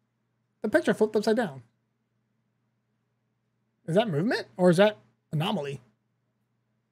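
A young man speaks expressively into a close microphone, in short bursts.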